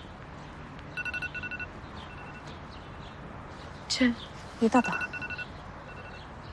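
A phone beeps in short repeated tones.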